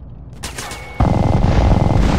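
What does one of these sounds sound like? A gun fires in a rapid burst.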